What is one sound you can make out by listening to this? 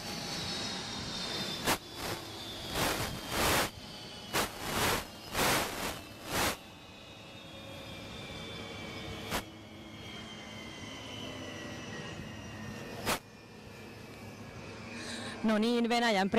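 A helicopter turbine whines steadily, slowly falling in pitch as it winds down.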